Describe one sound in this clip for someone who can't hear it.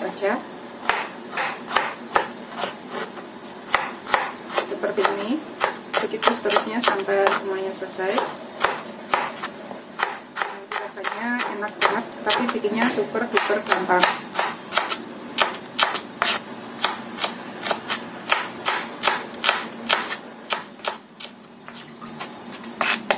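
A knife chops steadily against a wooden board.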